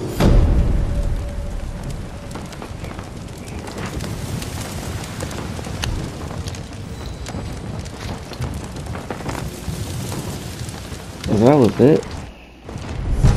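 A large bonfire crackles and roars.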